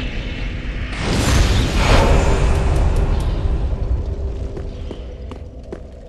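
A fiery whoosh roars up loudly and slowly fades.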